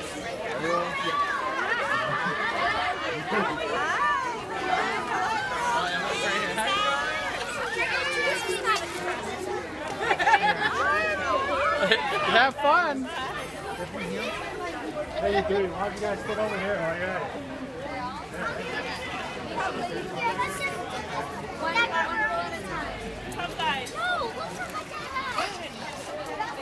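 A crowd of people of mixed ages chatter and call out nearby outdoors.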